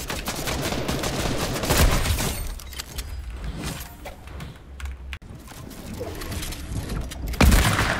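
A gun fires several shots.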